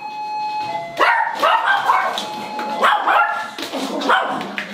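A dog barks excitedly.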